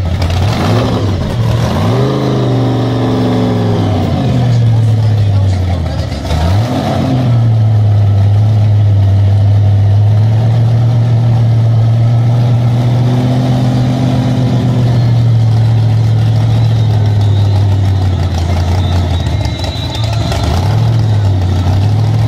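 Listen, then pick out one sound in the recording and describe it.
A car engine revs up sharply a few times.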